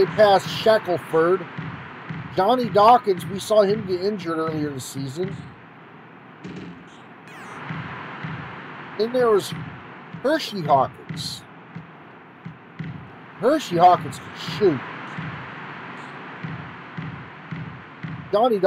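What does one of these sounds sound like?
A basketball bounces steadily on a court.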